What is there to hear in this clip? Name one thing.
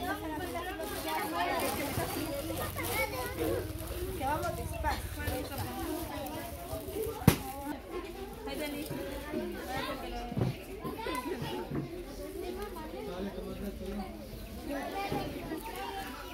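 A woman talks with the children.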